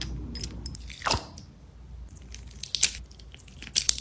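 Water beads rattle in a plastic tub.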